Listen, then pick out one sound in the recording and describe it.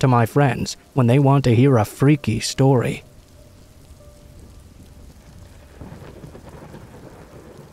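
Raindrops drip softly from branches.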